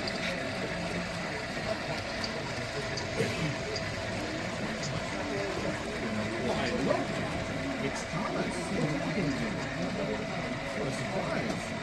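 A model freight train rolls along its rails.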